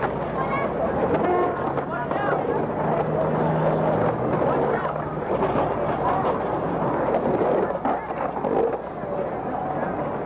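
Skateboard wheels roll and clatter on pavement.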